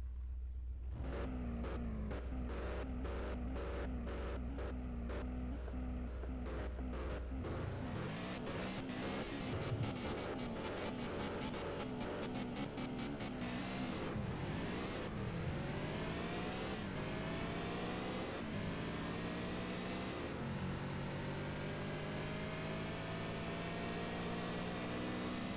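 A sports car engine idles and revs, then roars as it speeds up through the gears.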